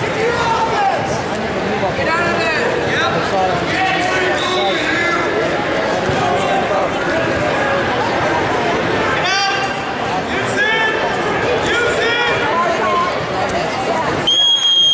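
Young wrestlers' bodies thud and scuffle on a mat.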